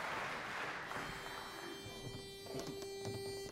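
A pitch pipe sounds a single steady note.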